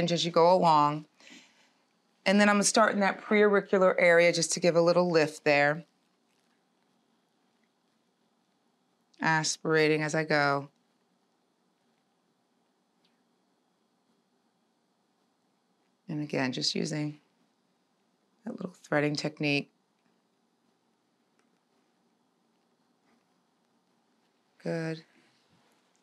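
A woman speaks calmly and clearly into a close microphone, in short bursts with pauses.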